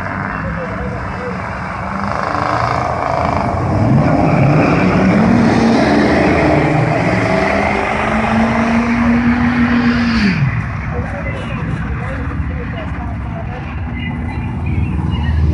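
Truck engines roar loudly and rev higher as they race away down a track, then fade into the distance.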